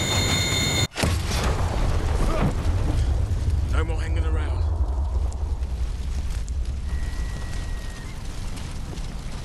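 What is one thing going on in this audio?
A fire roars and crackles close by.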